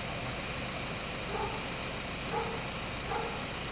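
A van engine idles nearby.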